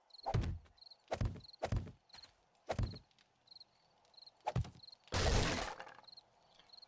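Heavy blows thud repeatedly against wood.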